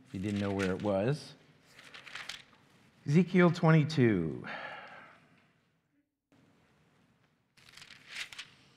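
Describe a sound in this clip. An older man reads aloud calmly through a microphone in an echoing room.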